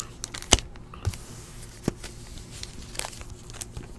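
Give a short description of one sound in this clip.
Stacked packs knock and tap together.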